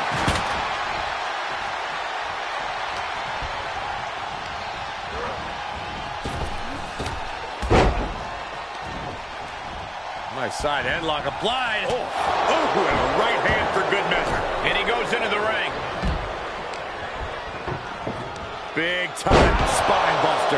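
Bodies slam onto a wrestling ring mat with heavy thuds.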